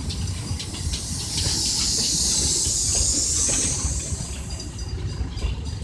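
Metal wheels squeal on the rails.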